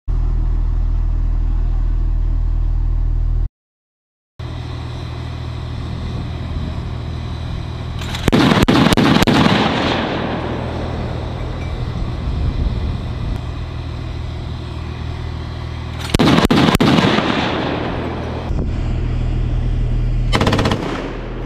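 An armoured vehicle's engine idles with a steady low rumble.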